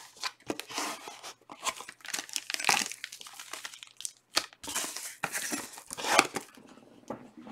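Plastic wrapping crinkles as it is torn open.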